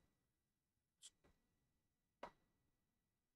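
Magic spells zap and crackle in short bursts.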